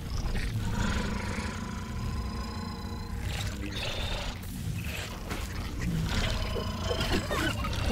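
An axe strikes a giant insect with sharp, crunching thwacks.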